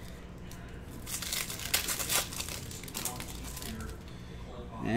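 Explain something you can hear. A plastic card wrapper crinkles and tears.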